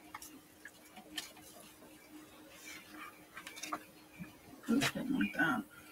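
A sheet of paper rustles as it is lifted from a table.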